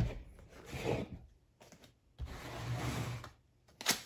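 A cardboard box slides across a table.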